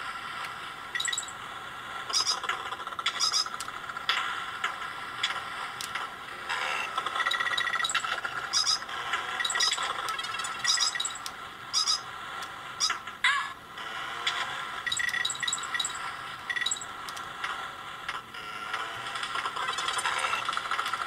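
Short electronic game sound effects chime and blip now and then.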